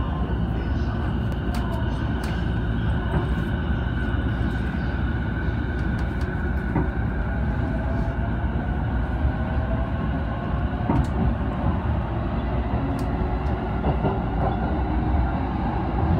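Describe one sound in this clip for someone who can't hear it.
Traction motors of an electric commuter train whine as the train pulls away.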